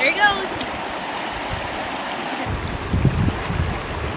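A fast-flowing river rushes past.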